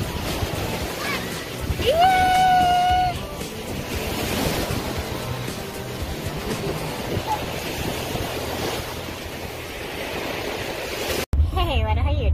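Small waves wash up over sand.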